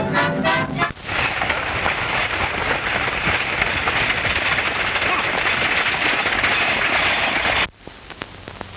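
A wagon's wheels rattle and clatter over a rough road.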